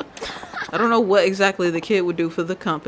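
A young boy cheers excitedly.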